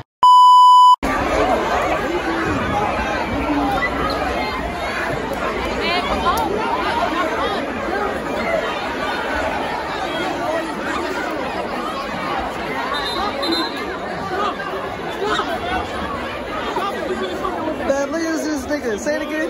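A large crowd shouts and chatters excitedly.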